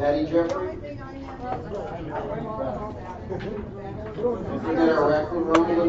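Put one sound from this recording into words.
Checkers click as they are moved on a board.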